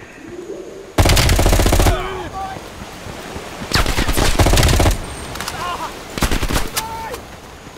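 A rifle fires loud bursts of shots close by.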